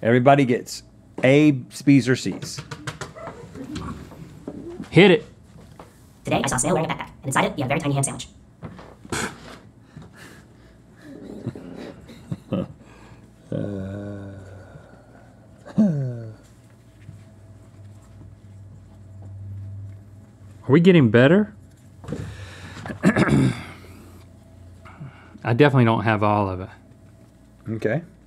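Two men talk with animation into microphones close by.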